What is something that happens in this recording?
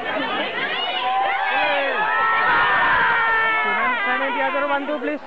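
Young women shriek and scream with excitement.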